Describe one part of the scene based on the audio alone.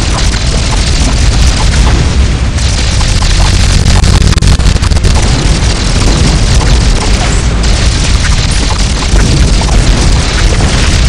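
Video game sound effects of balloons popping and attacks firing play in a dense stream.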